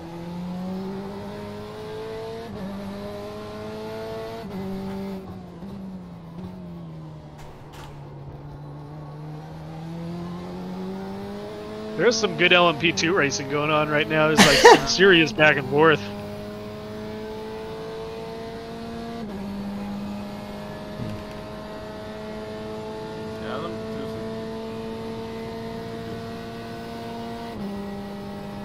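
A racing car engine drones steadily, rising and falling in pitch as the gears change.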